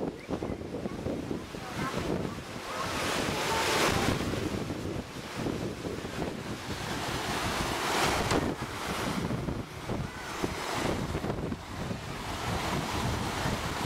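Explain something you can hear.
Wind rumbles and gusts outdoors.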